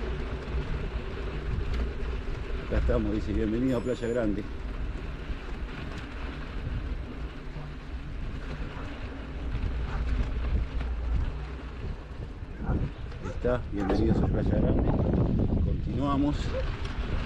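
Wind rumbles across the microphone outdoors.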